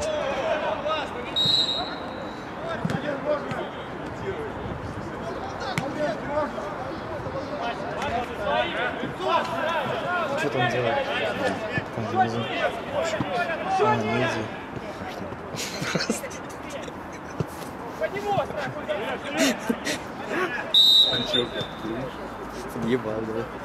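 Men shout and call out to each other across an open outdoor pitch.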